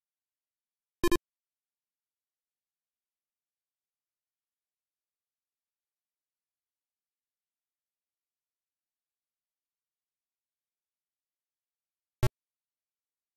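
A short, harsh electronic buzz sounds twice, well apart, with silence in between.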